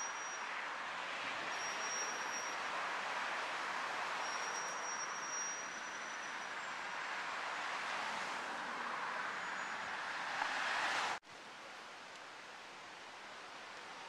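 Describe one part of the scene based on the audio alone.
Steady traffic rushes past on a busy street outdoors.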